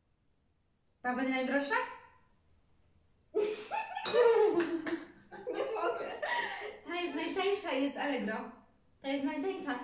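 A young woman speaks animatedly close by.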